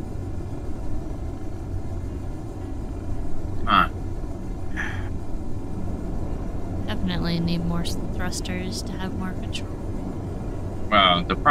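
A spacecraft engine drones steadily and low.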